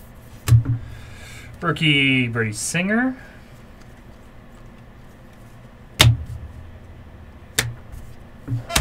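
Stiff cards are flipped and tapped together.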